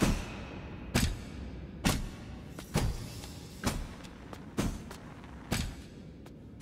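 Heavy footsteps thud slowly on a stone floor, echoing in a large hall.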